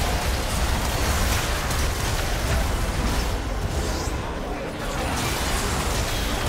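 Fantasy game spell effects whoosh and crackle in a busy battle.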